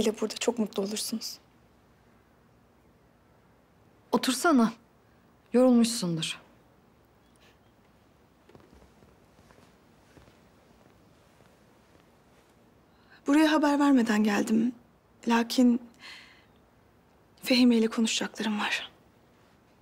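A young woman speaks cheerfully, close by.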